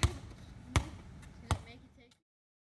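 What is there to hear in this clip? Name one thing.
A basketball bounces on pavement outdoors.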